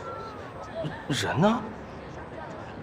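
A young man speaks sharply.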